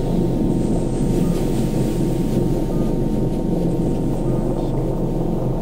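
Dense electronic music drones and buzzes steadily from loudspeakers.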